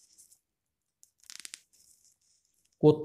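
A plastic cap clicks off a syringe needle.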